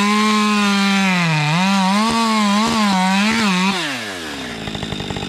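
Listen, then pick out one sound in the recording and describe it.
A chainsaw revs loudly, its pitch wavering as it cuts wood.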